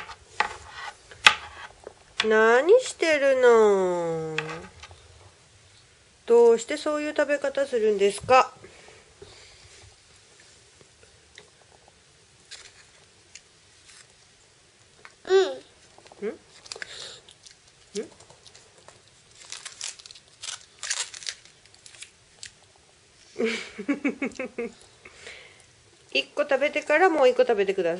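A small girl talks and vocalizes in a high voice close by.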